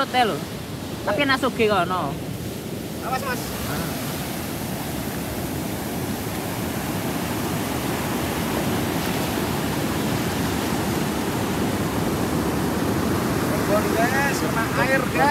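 Ocean waves crash and wash up on a beach.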